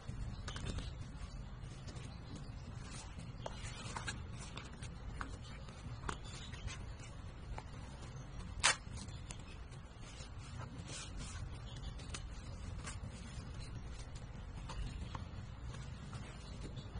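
Hands rustle and rub the nylon fabric of a bag.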